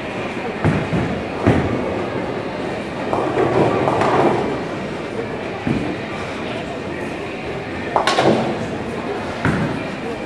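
Bowling balls rumble down lanes in a large echoing hall.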